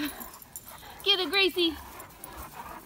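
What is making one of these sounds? A dog gives a few short, high yelps.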